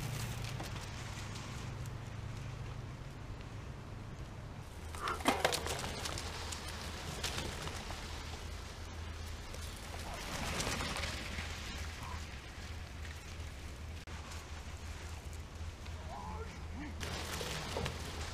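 Bicycle tyres crunch over sand as riders pass close by.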